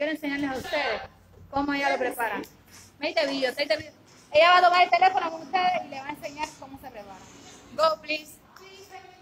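A woman speaks with animation close to a phone microphone.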